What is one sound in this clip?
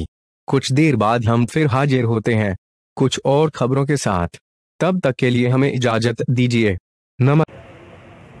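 A man speaks loudly and quickly, close to a microphone.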